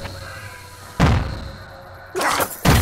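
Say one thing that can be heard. A whooshing game sound effect bursts out loudly.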